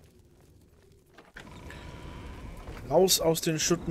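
A heavy wooden door opens with a thud.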